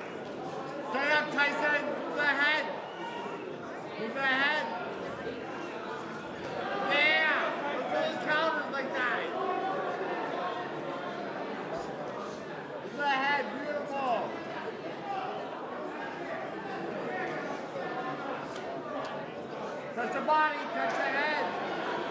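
Shoes squeak sharply on the ring floor in short bursts.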